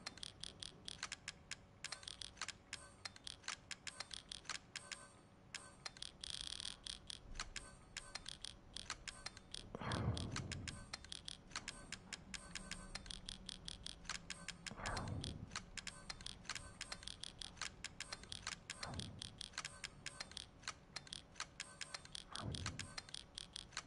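Short menu clicks tick quickly, one after another.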